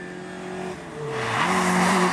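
Tyres hiss on the road as a rally car speeds by.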